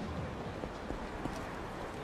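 Footsteps tap on pavement.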